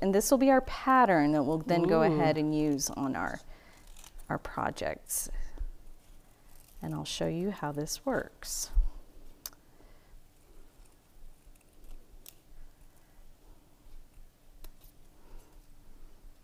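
Small metal tabs clink and click in a woman's fingers.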